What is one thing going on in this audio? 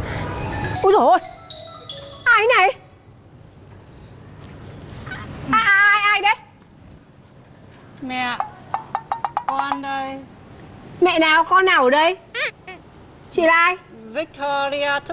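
A middle-aged woman speaks with animation, close by.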